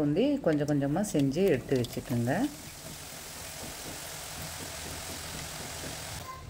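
Batter sizzles and crackles as it drops into hot oil.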